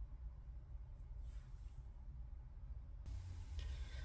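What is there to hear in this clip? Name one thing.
A hand brushes lightly across a cloth-covered table.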